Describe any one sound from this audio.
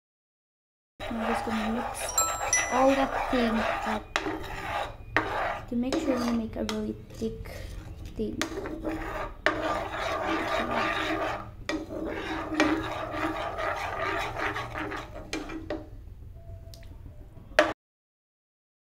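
A spoon scrapes and stirs liquid in a metal pan.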